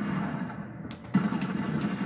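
Gunfire rings out in a video game.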